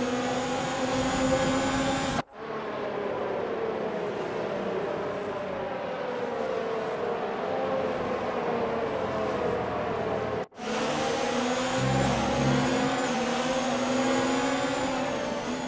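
Racing car engines whine at high revs.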